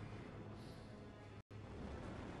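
A man groans in pain close by.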